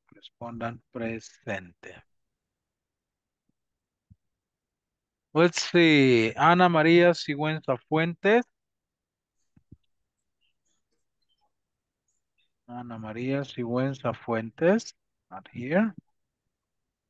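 A man speaks with animation through an online call, in short bursts with pauses.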